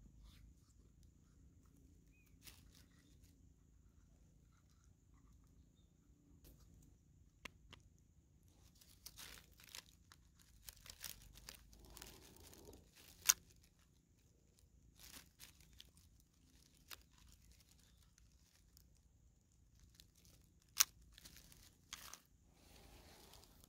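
Small plastic and metal parts click and snap as hands handle a small device.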